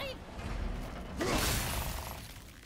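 A heavy axe hits a metal mechanism with a loud clang.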